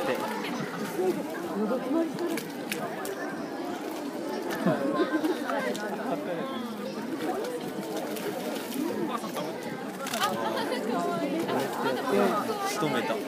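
Water splashes and sloshes as large animals swim and play.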